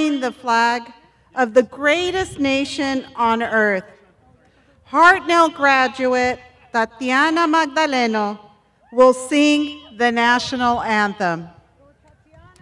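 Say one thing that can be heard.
A woman speaks emotionally through a microphone outdoors.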